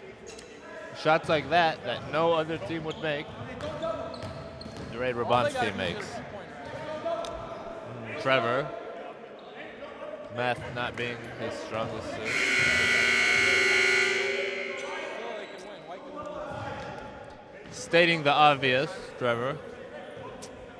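Men shout and talk loudly in a large echoing gym.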